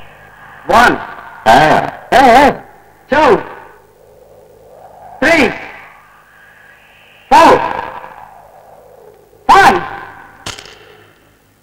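A police whistle blows in short, sharp blasts close by.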